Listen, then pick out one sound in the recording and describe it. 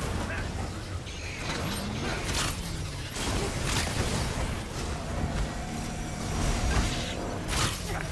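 A bowstring twangs as arrows fly.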